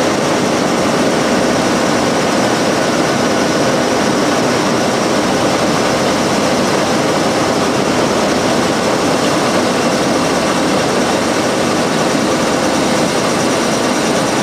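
A paper sheeter runs with a steady mechanical roar and whir of rollers.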